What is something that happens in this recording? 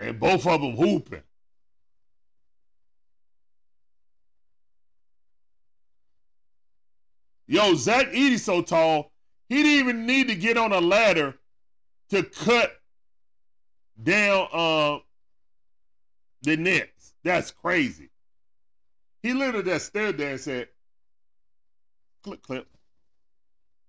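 A man talks with animation into a close microphone, in bursts with pauses.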